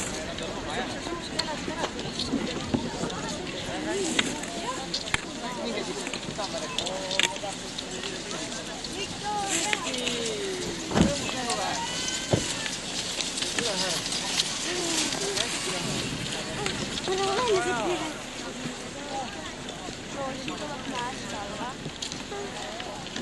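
Ski poles click against hard snow.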